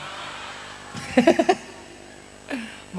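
A young man laughs into a microphone.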